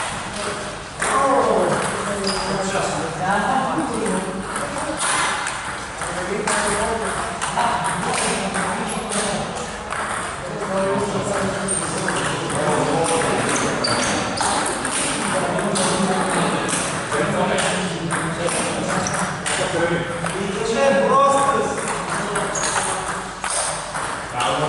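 Adult men talk and call out across an echoing hall.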